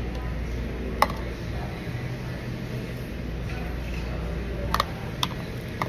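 Chopsticks tap against a plastic tub.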